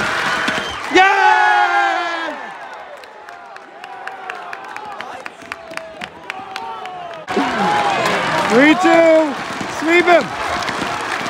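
Men in the crowd shout loudly nearby.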